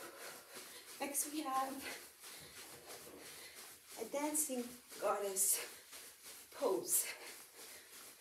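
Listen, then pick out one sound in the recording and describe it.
A young woman speaks in short bursts nearby, a little out of breath.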